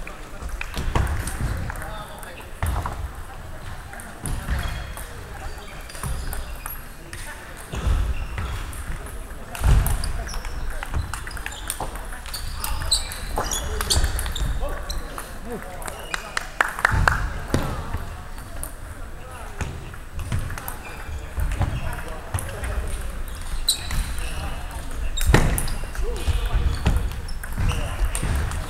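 Sneakers shuffle and squeak on a wooden floor.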